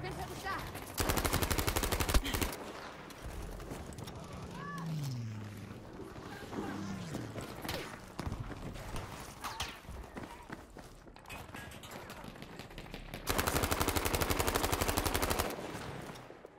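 A submachine gun fires rapid bursts up close.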